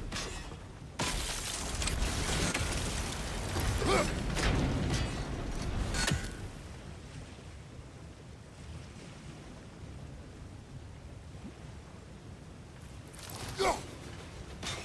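An axe strikes wood with a heavy thud.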